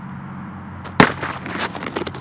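A bag bursts with a loud smack on the road and splashes.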